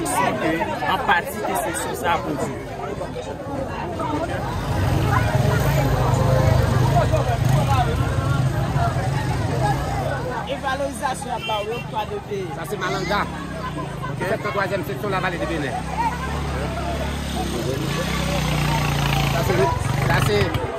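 A large crowd chatters and calls out outdoors.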